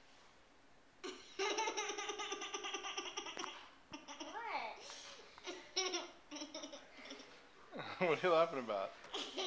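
A young boy laughs loudly and giggles close by.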